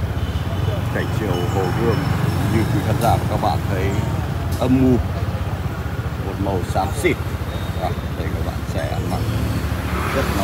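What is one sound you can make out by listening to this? Several men and women chatter at a distance outdoors.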